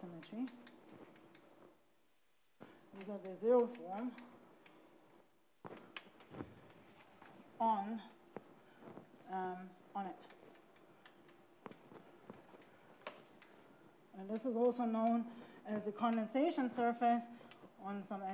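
A woman talks calmly, explaining.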